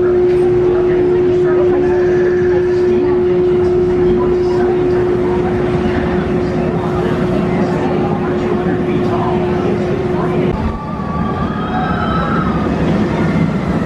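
Riders scream as a roller coaster train passes.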